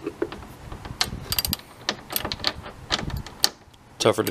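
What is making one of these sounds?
Plastic and metal parts click and tap sharply.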